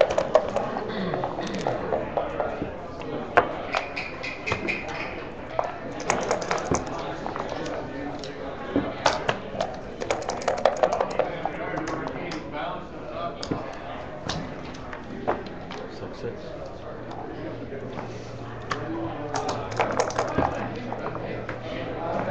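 Dice rattle in a cup and tumble onto the board.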